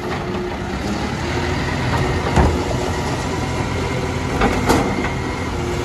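A hydraulic arm whines as it lifts a wheelie bin.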